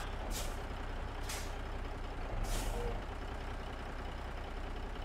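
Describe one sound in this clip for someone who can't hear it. A truck's diesel engine idles with a steady low rumble.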